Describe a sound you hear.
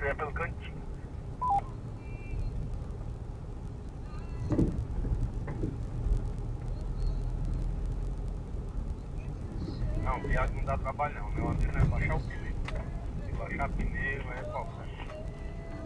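Tyres rumble and bump over a rough dirt road.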